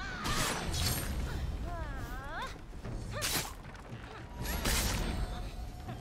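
Swords whoosh and clash in quick bursts.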